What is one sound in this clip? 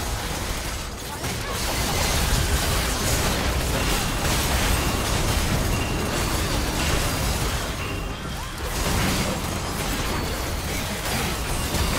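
Spell effects crackle and burst in a busy game fight.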